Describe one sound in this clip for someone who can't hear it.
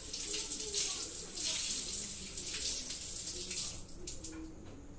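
Water runs from a tap and splashes.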